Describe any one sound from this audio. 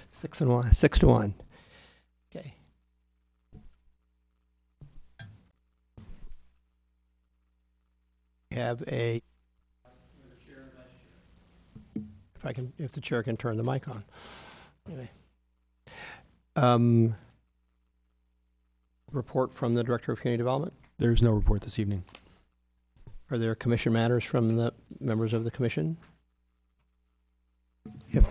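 A man speaks calmly through a microphone, with pauses between his words.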